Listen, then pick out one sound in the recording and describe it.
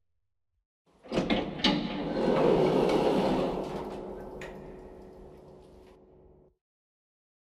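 Heavy metal doors slide open with a loud rumble.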